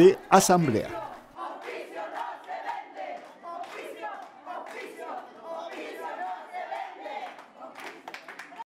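A crowd cheers and shouts excitedly.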